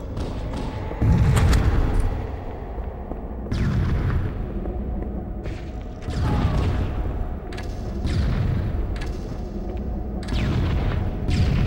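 Shotgun blasts boom every couple of seconds, each with a short rumbling echo.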